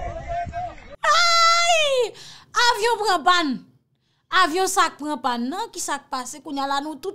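A young woman speaks loudly and with animation into a microphone.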